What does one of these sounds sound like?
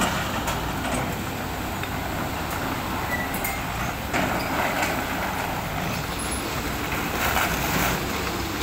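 An excavator bucket scrapes and knocks through rubble and rock.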